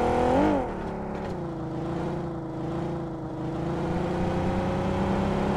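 A car engine drones steadily while driving.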